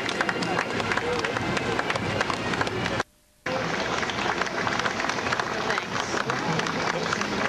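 Men and women in a crowd chatter nearby.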